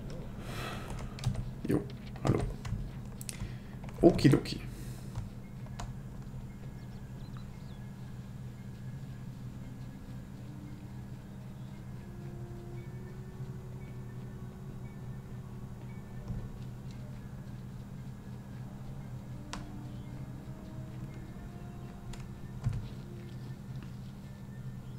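Game music plays softly.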